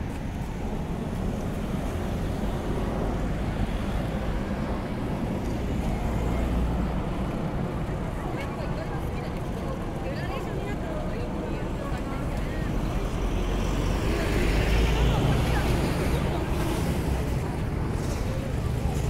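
Traffic rumbles past on a busy road outdoors.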